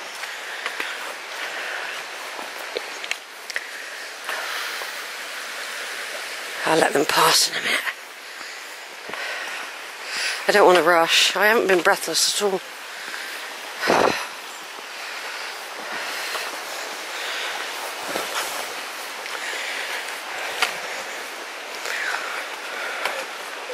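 A stream of water flows and babbles steadily nearby.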